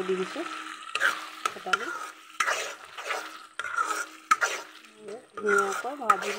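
A metal spoon scrapes and clatters against a metal pan while stirring.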